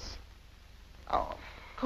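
An elderly woman speaks up loudly, close by.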